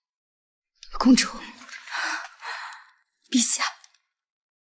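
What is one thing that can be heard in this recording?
A woman answers calmly, close by.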